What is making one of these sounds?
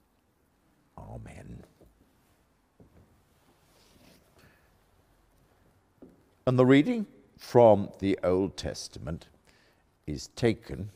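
An elderly man reads aloud calmly into a microphone in a large echoing room.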